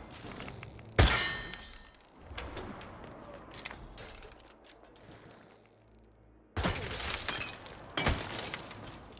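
A rifle fires with a sharp crack.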